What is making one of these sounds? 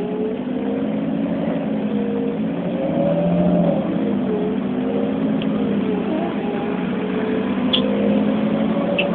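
A vehicle engine drones steadily from inside, its pitch rising and falling slightly.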